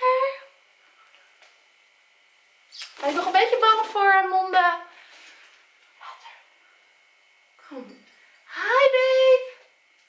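A young woman speaks playfully close by, in a high, sing-song voice.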